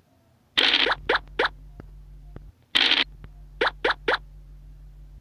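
A game piece clicks quickly from space to space.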